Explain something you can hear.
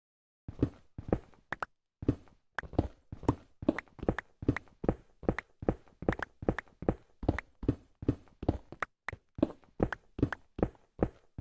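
Blocks break with a crumbling pop.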